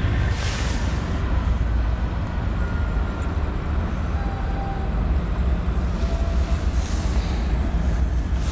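A diesel locomotive engine rumbles deeply as a freight train approaches.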